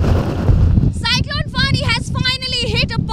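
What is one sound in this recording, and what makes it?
A young woman speaks loudly and with animation into a handheld microphone.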